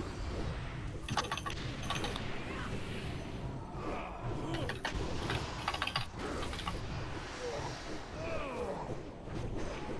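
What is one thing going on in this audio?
Magic spells whoosh and crackle in a fierce battle.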